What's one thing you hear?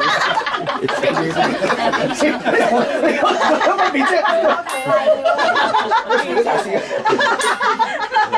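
Several adults laugh together close by.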